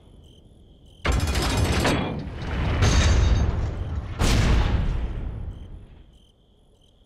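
Heavy chains and machinery rumble loudly, echoing in a large hall.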